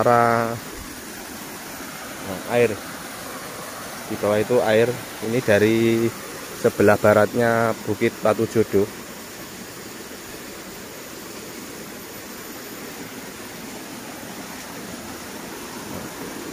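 Water trickles along a shallow channel.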